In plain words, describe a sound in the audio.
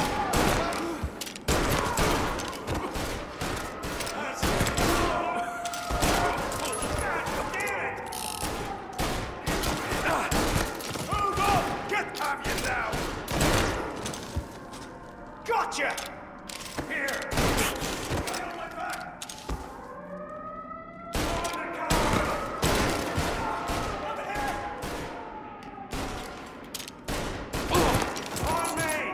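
Pistol shots ring out again and again, echoing in a large room.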